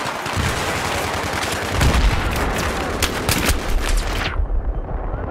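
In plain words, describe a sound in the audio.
Gunshots fire in rapid bursts nearby.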